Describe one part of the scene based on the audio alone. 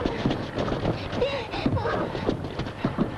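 A woman calls out in a pleading voice.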